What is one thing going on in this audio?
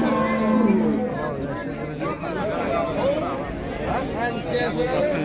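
Several men talk loudly nearby outdoors.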